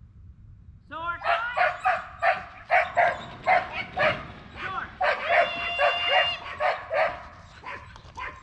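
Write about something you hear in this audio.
A woman calls out loudly outdoors.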